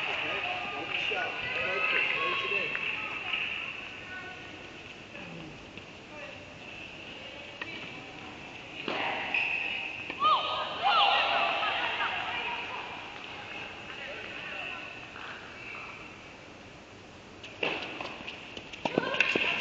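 Tennis balls are struck with rackets, with sharp pops in a large echoing indoor hall.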